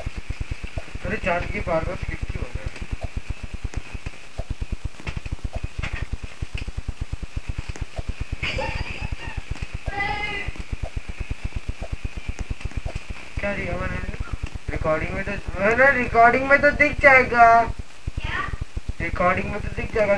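A boy talks with animation into a nearby microphone.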